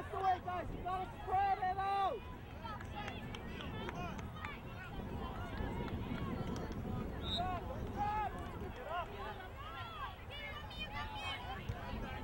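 A crowd of onlookers murmurs and calls out in the distance.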